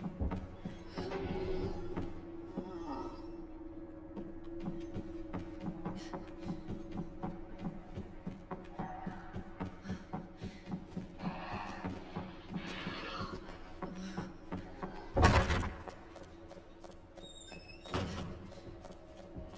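Footsteps run quickly.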